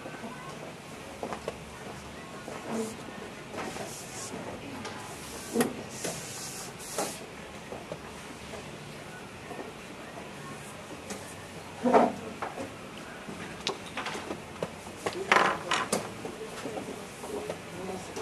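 Wooden chess pieces tap and click onto boards.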